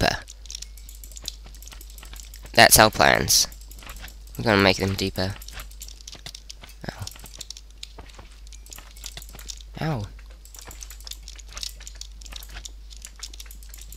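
Slimes squelch wetly as they are struck.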